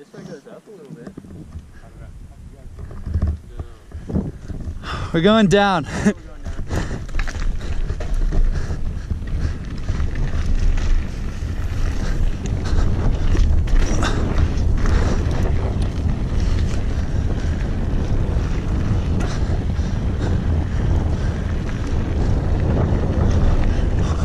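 Wind rumbles loudly against the microphone.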